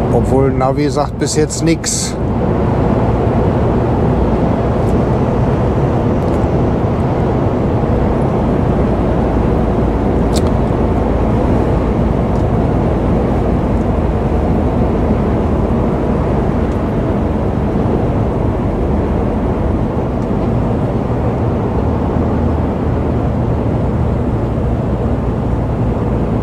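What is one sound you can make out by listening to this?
Tyres rumble steadily on a highway.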